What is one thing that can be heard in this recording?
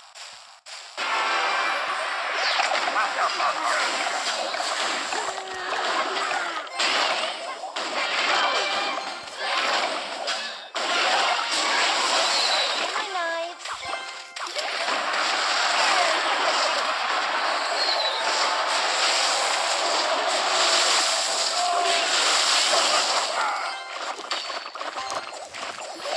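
Cartoonish battle sound effects clash, zap and burst.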